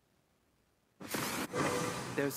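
Game sound effects clash and whoosh as characters fight.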